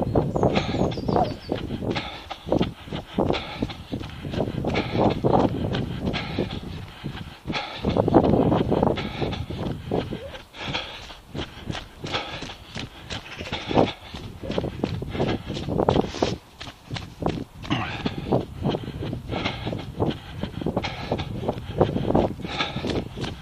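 Footsteps crunch steadily on snow.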